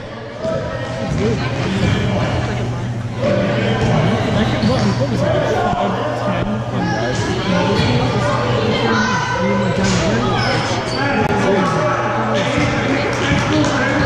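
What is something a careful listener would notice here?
Young girls chatter and cheer nearby in a large echoing hall.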